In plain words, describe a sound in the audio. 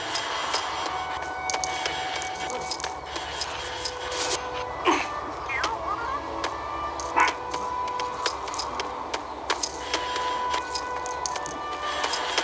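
Short chimes ring out as coins are picked up in a video game.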